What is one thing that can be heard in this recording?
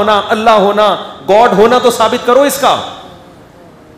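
A man speaks forcefully through a microphone.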